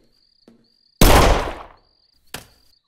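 A gunshot cracks loudly.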